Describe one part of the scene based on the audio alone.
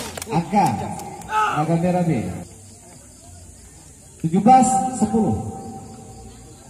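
Young men shout loudly outdoors.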